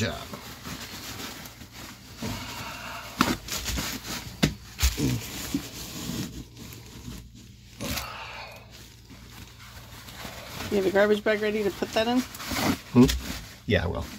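Paper towels rustle and crumple.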